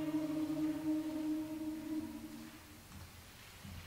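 A choir sings a held chord in a large echoing hall.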